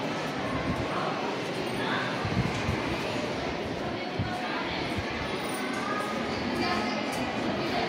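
A woman's footsteps tap on a tiled floor.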